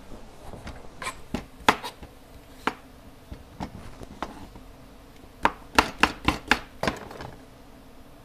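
Dishes and utensils clink and clatter nearby.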